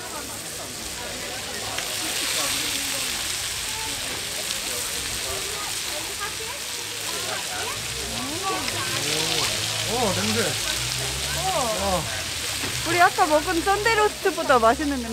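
Meat sizzles loudly in a frying pan.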